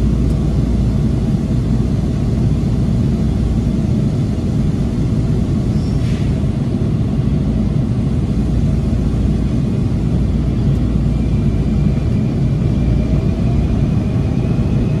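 A subway train rumbles loudly along the tracks.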